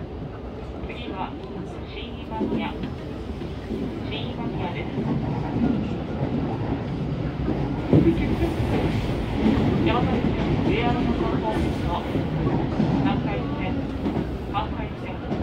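Train wheels clatter and squeal over rail joints.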